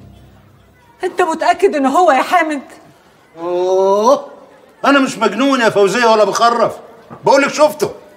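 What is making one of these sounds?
A woman speaks tearfully.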